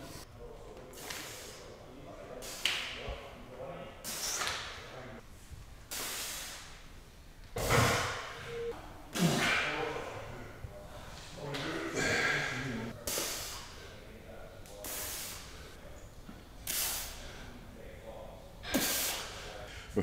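A man breathes out hard with effort.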